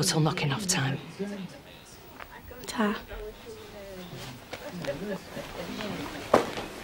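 A woman speaks firmly and seriously close by.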